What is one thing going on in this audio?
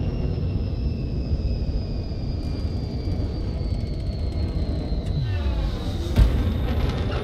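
A spacecraft engine rumbles low and steady.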